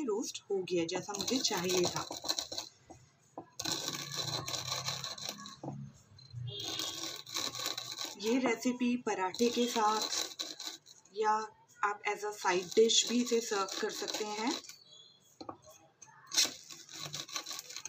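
A wooden rolling pin crushes dry spices with a gritty crunch.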